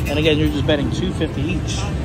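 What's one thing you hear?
A plastic button clicks as a hand presses it.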